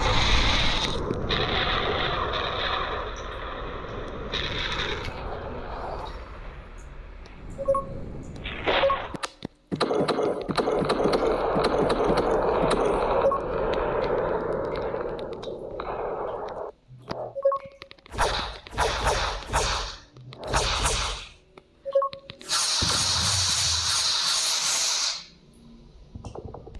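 A young man talks into a microphone with animation, close by.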